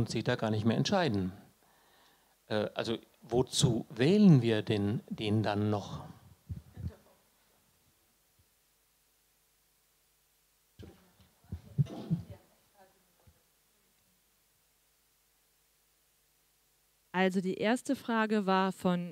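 A woman speaks calmly into a microphone, heard through loudspeakers in a large echoing room.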